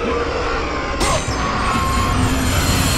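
Magic bursts crackle and zap.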